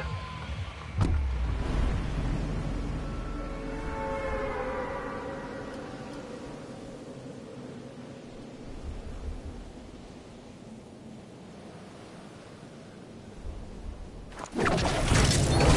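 Wind rushes loudly during a skydive, then slowly fades.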